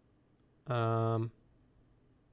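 A game menu plays a short, loud buzzing tone.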